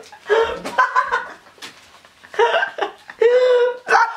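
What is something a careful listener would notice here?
A young man blows his nose loudly into a tissue.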